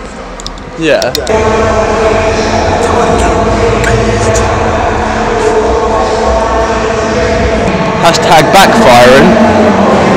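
A young man shouts loudly close by, his voice echoing in a large hall.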